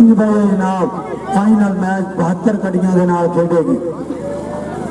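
A man talks loudly and with animation through a loudspeaker.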